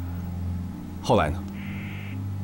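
A younger man asks a short question, close by.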